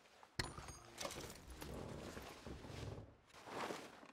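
A wooden lid thumps shut.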